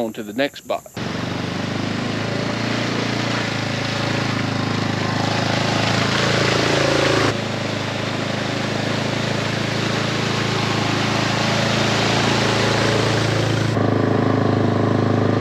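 An all-terrain vehicle engine rumbles steadily.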